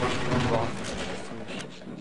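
Footsteps clang on a metal ladder.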